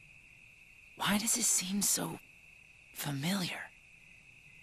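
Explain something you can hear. A young boy speaks softly and wistfully.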